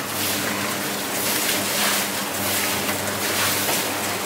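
Water splashes into a metal drum.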